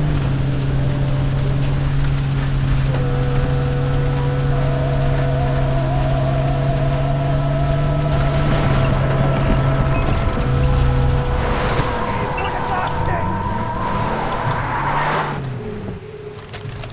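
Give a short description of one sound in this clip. A vehicle engine hums steadily while driving over rough ground.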